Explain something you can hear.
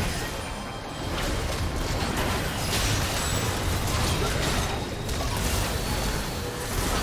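Fantasy video game combat sounds of clashing weapons and bursting spells fill a battle.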